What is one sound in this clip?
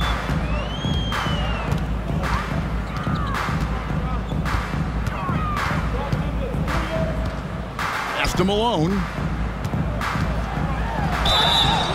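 A basketball bounces in steady dribbles on a wooden floor.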